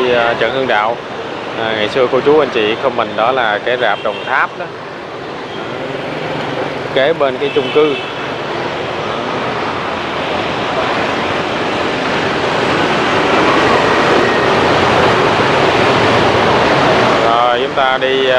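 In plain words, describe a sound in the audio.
Traffic roars past on a busy street, growing louder.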